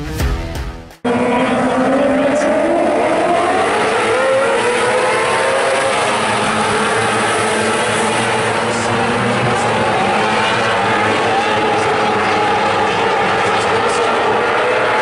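Many racing car engines roar loudly as they speed around a track, rising and falling in pitch.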